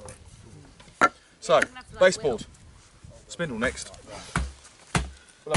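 Wood knocks against a wooden bench.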